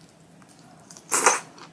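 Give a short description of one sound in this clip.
A young woman slurps noodles loudly close to a microphone.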